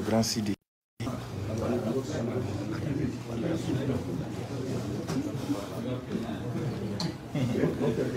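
A crowd of men murmurs and talks in a room.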